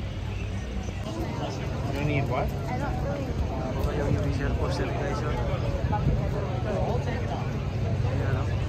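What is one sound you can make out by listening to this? A crowd of adults and children chatters nearby outdoors.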